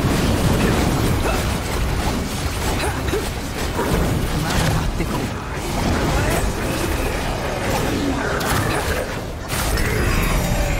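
Spell effects crackle and blast in a game battle.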